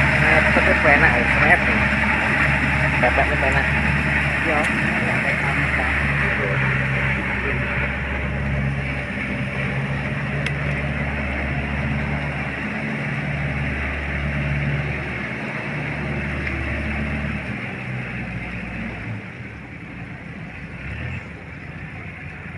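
A rotary tiller churns wet mud.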